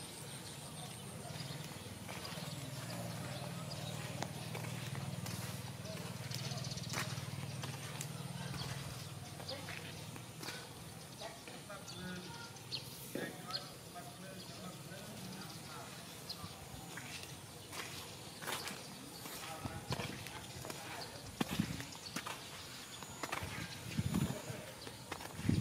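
A dog's paws patter softly on sandy ground.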